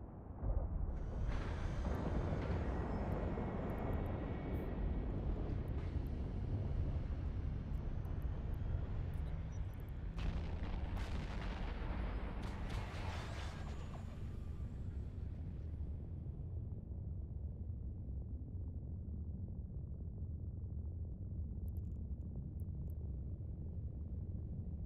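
A deep engine hum rumbles steadily throughout.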